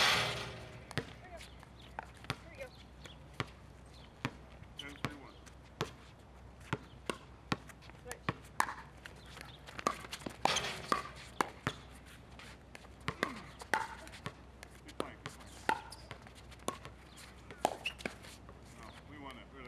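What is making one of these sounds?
Paddles hit a plastic ball with sharp pops, back and forth.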